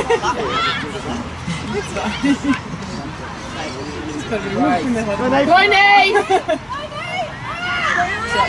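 Adult spectators shout and cheer excitedly close by, outdoors.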